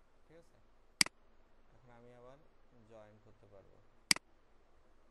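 A mouse button clicks sharply.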